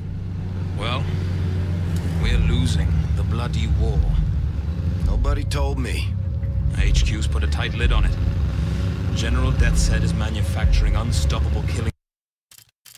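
A car engine rumbles steadily as a vehicle drives.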